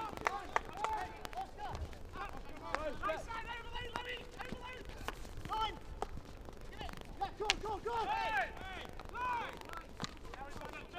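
Hockey sticks strike a ball with sharp clacks.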